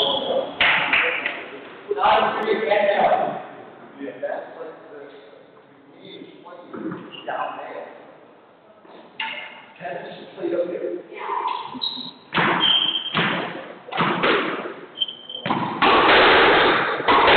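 A squash ball smacks against the walls of an echoing court.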